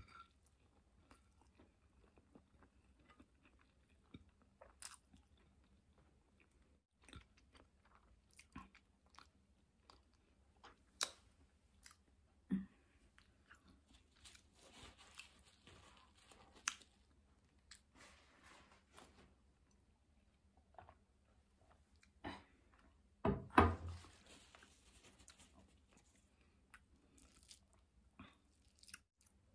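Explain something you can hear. A woman chews food close to the microphone with soft smacking sounds.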